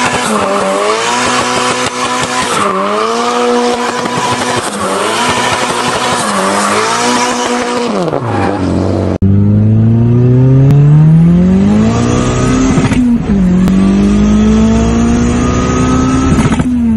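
A car engine revs loudly, rising and falling.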